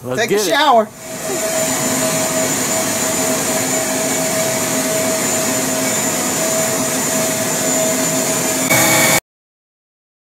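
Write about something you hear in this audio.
A mass of honey bees buzzes close by.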